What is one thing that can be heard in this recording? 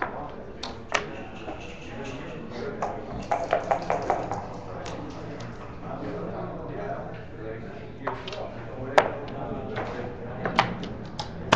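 Game pieces click sharply as they are moved on a board.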